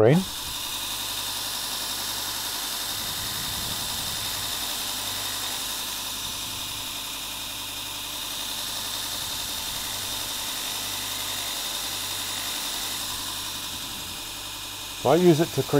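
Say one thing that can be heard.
A steel blade grinds against a spinning wheel.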